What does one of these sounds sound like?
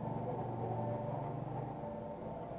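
Electric hair clippers buzz close by.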